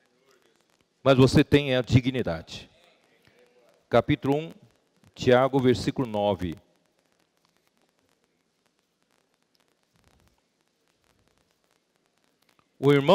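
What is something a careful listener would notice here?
A middle-aged man reads aloud calmly through a microphone, with pauses.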